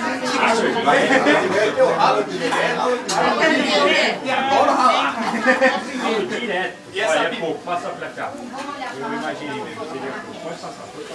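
Several women talk and chatter close by.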